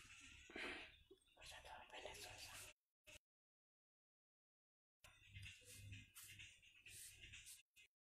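Scissors snip through hair close by.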